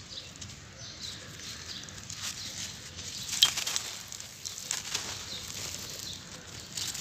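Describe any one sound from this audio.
Hands crumble and rub a dry block, with gritty sand pouring and scratching.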